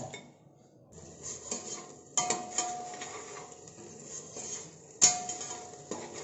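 A thick sauce bubbles and sizzles as it boils.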